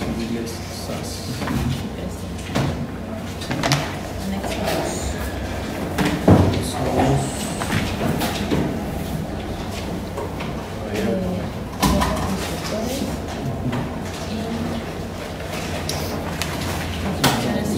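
Papers rustle and flip.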